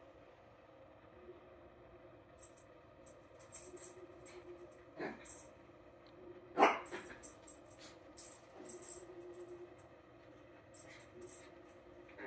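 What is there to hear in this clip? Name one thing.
A small dog scuffles and thumps while playing on a fabric mat.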